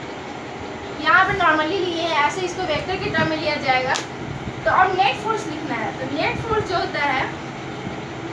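A young woman speaks calmly and clearly, close by.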